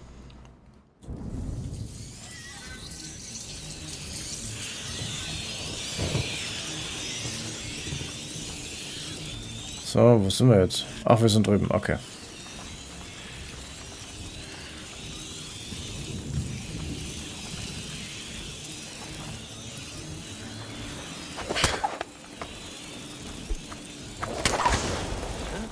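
Torches crackle and hiss as they burn.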